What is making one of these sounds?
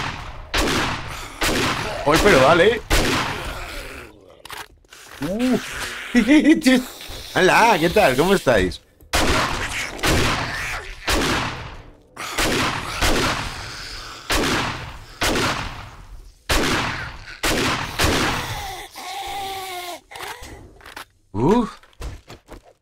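A zombie snarls and growls up close.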